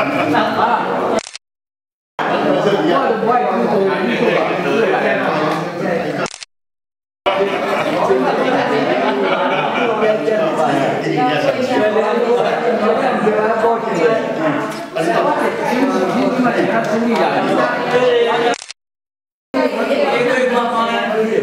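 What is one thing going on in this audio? Men and women chat nearby in a lively room.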